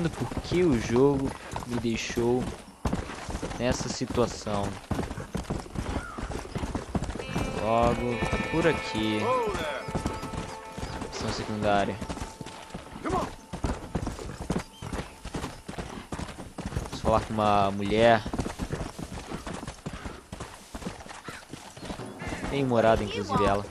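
A horse gallops with quick, steady hoofbeats on dry ground.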